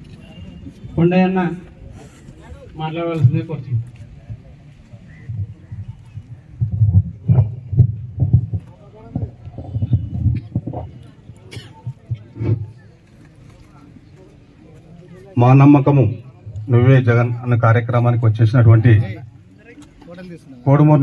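A man speaks loudly into a microphone through loudspeakers, outdoors.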